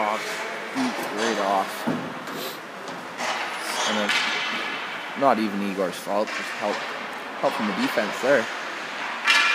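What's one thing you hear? Young players shout and call out across the rink.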